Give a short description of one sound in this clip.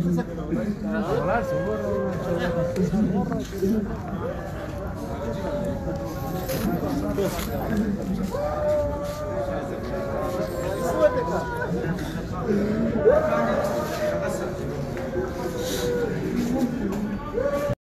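Several men wail loudly and mournfully close by.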